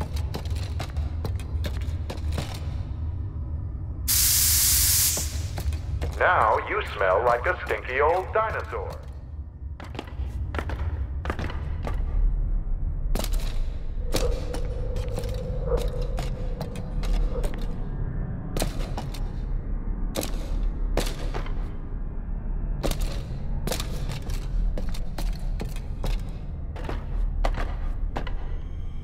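Small footsteps tap quickly on hard ground.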